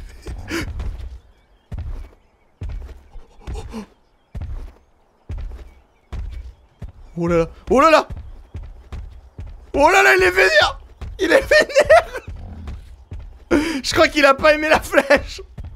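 A large creature's heavy footsteps thud steadily.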